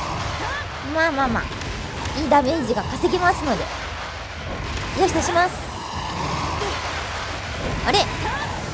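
A blade slashes and strikes a large creature with sharp hits.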